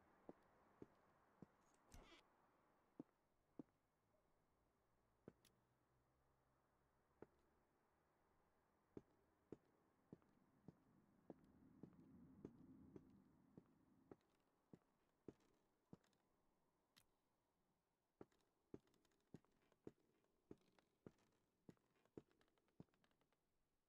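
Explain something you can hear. Slow footsteps knock on a hard floor.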